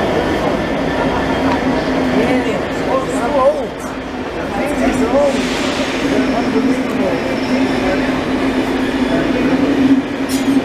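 A train hums steadily while standing.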